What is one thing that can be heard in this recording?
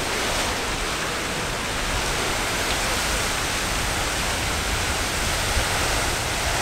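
A geyser erupts with a steady roaring hiss of water and steam outdoors.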